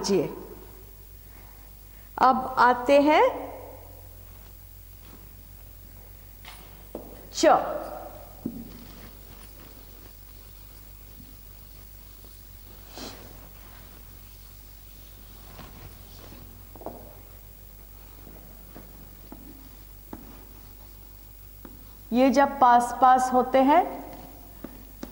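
A woman speaks clearly and slowly, like a teacher, in short bursts.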